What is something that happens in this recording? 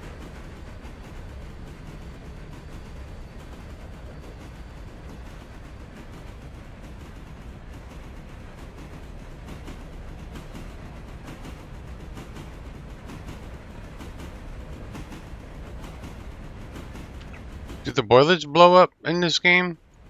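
A steam locomotive rumbles steadily along the track.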